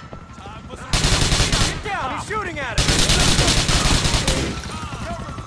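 A submachine gun fires rapid bursts of shots.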